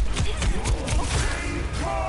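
A bright energy blast bursts loudly.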